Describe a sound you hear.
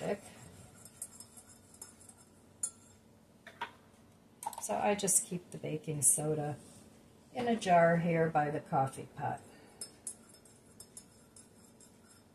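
A spoon clinks against a ceramic mug while stirring.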